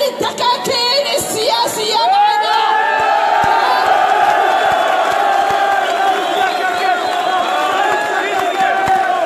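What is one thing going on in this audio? A large crowd of men and women chants and shouts loudly outdoors.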